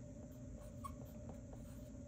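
A marker squeaks faintly on a card.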